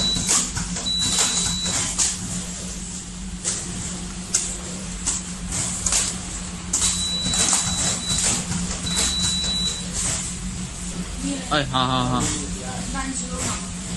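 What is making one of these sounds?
Small packets tap and rattle along a conveyor belt.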